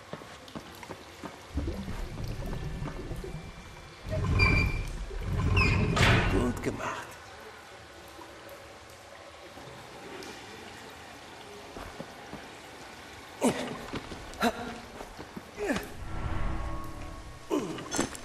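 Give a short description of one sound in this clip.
Footsteps thud on a metal floor.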